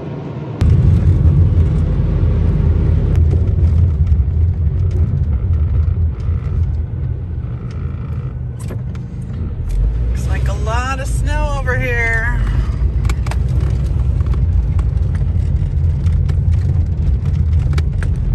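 A car engine rumbles low and steady from inside the car.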